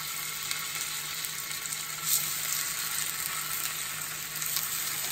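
Potato slices drop into hot oil with soft sizzling pops.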